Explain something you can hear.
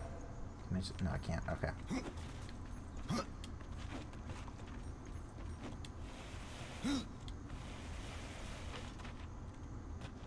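Quick footsteps patter on a stone floor.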